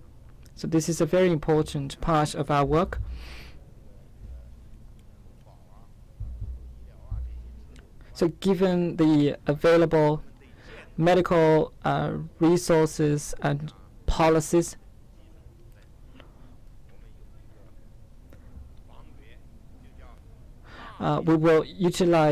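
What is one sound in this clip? A man speaks calmly into a microphone in pauses.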